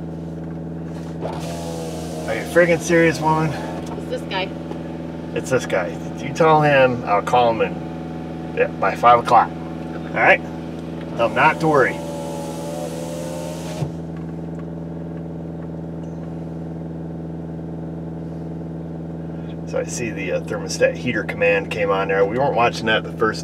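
A car engine hums steadily at a high idle.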